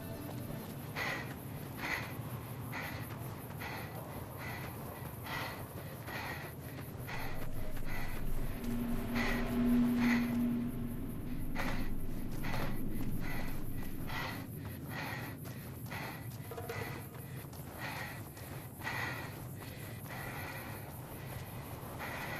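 Footsteps crunch steadily on dry ground at a running pace.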